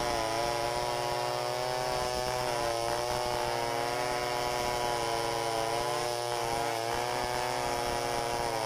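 A chainsaw roars loudly close by, its engine rising and falling as it cuts wood.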